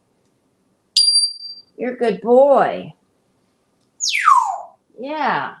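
A parrot gives a sharp whistle.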